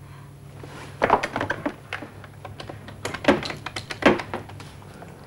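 Telephone buttons click as a number is dialled.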